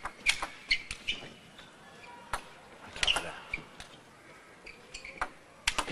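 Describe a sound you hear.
A table tennis ball is struck back and forth with paddles in a rally.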